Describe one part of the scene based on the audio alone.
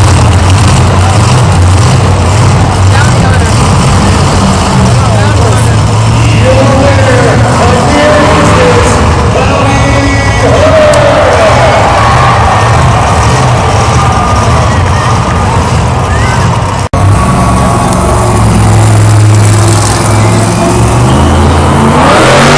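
Monster truck engines roar loudly.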